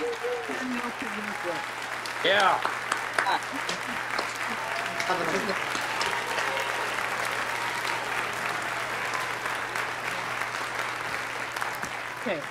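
Several people clap their hands over an online call.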